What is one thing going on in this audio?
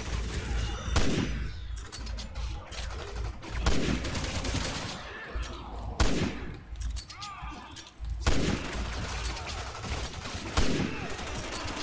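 Rifle shots boom at intervals.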